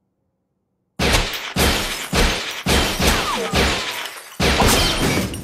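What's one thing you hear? Gunshots crack loudly in quick succession.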